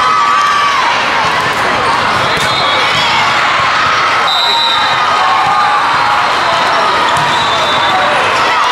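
A crowd of many voices chatters loudly in a large echoing hall.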